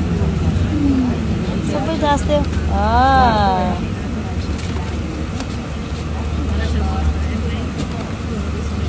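A low, steady engine drone fills an aircraft cabin.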